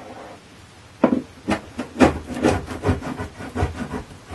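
A scraper scrapes along a wooden surface in short strokes.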